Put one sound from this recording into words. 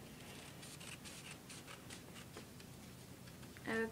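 Scissors snip through construction paper.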